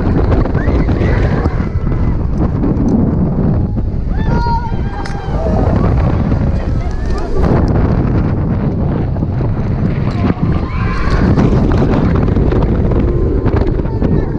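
Wind roars loudly past a microphone outdoors.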